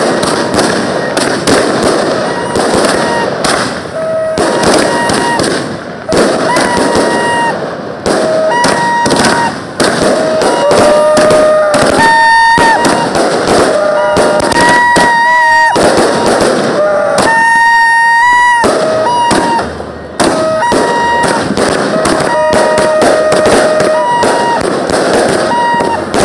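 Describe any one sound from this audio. Fireworks crackle and bang rapidly and loudly nearby.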